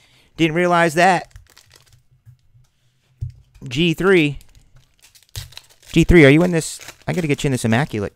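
A foil card pack crinkles as it is torn open.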